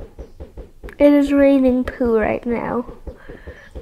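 A young girl speaks with animation close to a microphone.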